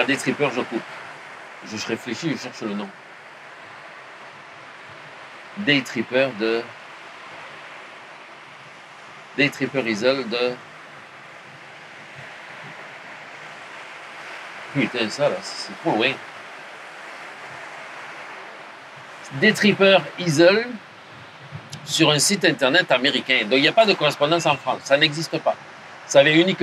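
A middle-aged man speaks calmly into a clip-on microphone.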